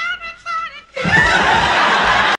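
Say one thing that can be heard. A body thuds onto the floor.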